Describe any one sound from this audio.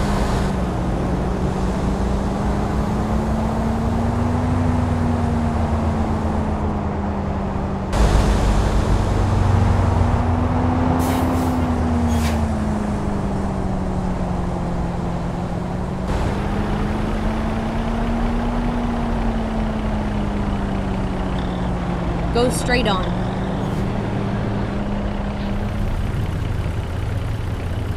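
A truck's diesel engine hums steadily, rising and falling in pitch.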